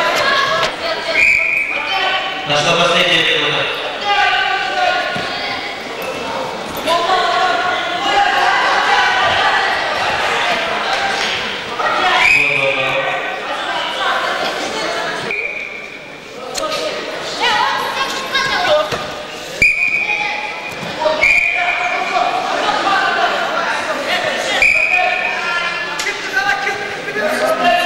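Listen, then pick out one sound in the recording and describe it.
Boys in a crowd shout excitedly.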